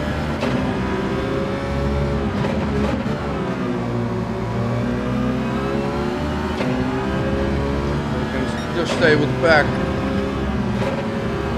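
A racing car engine roars steadily, its pitch rising and falling as the car speeds up and slows for corners.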